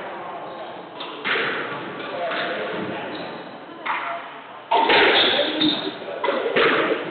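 A squash ball smacks against the walls of an echoing court.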